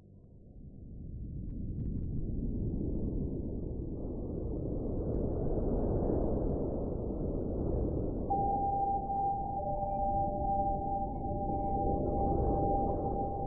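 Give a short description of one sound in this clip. Leaves and branches rustle and thrash in the wind.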